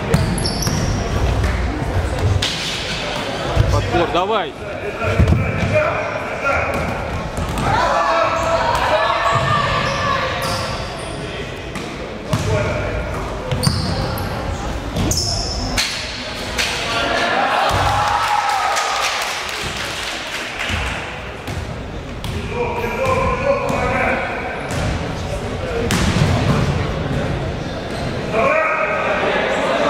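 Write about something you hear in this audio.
A crowd of young spectators chatters and cheers.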